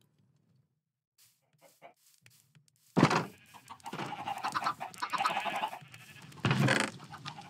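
Footsteps tread on grass.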